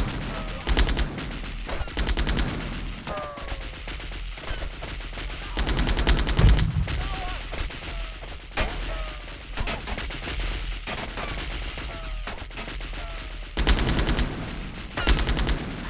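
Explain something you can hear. A machine gun fires in rapid, loud bursts.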